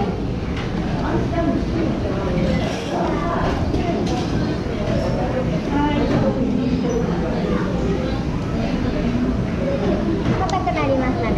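Several women chat quietly in the background.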